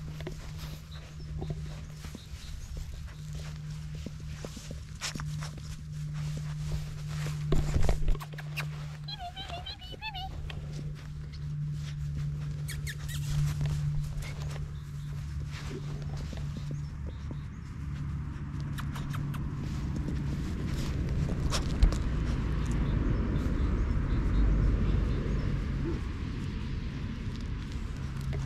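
A puppy rustles and tugs at soft toys on a blanket.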